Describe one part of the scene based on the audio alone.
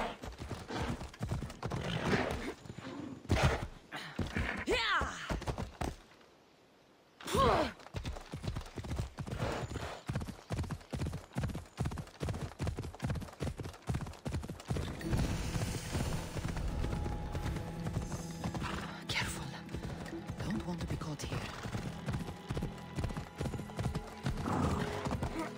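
A horse gallops with quick, steady hoofbeats.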